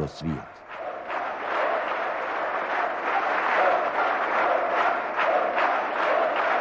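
A crowd of men murmur a prayer together in a large echoing hall.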